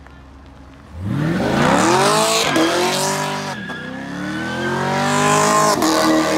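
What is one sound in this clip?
Tyres screech and squeal on pavement.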